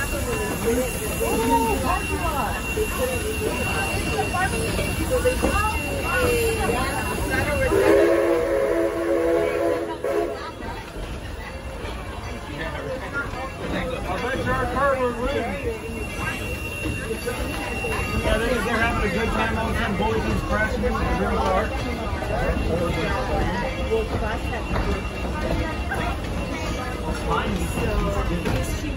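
A ride vehicle rumbles and rattles steadily along a track.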